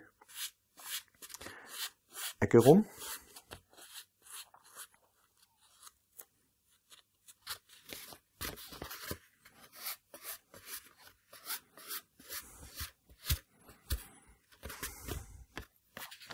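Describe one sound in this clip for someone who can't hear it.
Stiff paper rustles and crinkles as hands fold and handle it.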